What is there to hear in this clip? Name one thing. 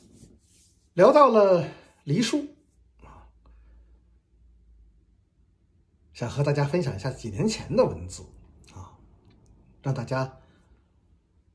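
A middle-aged man speaks calmly and close up, with pauses.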